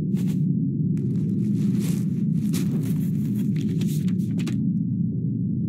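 Bubbles fizz and hiss in short bursts.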